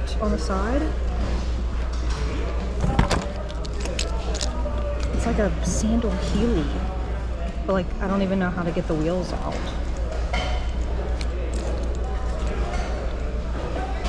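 Leather shoes knock and rustle as hands sort through a pile.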